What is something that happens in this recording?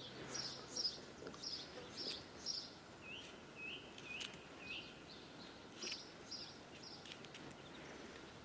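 A knife scrapes and trims a mushroom stem close by.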